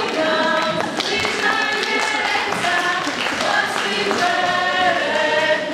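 A group of young women sing together through microphones in a hall.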